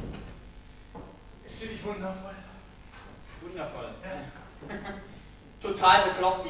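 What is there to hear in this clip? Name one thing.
A man speaks with animation in a large echoing hall.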